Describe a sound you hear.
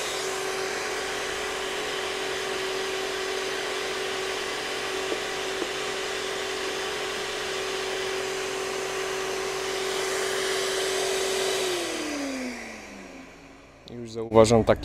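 A garden shredder motor hums steadily, then winds down to a stop.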